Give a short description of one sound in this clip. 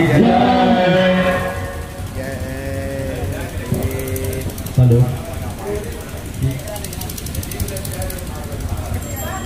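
A crowd of young men chatter and call out close by.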